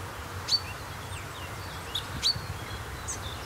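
A woodpecker gives sharp calls nearby.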